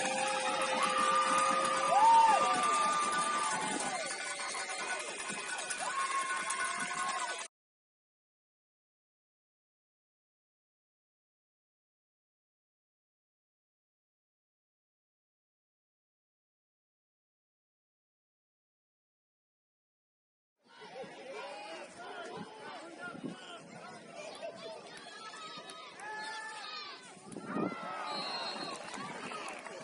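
A crowd cheers and shouts across an outdoor field.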